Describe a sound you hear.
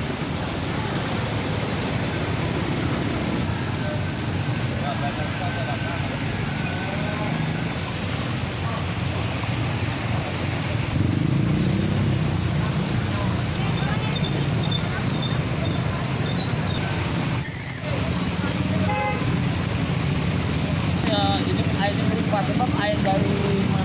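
Motorbike engines hum as they ride through shallow floodwater.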